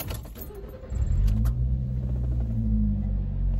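A car engine hums steadily nearby.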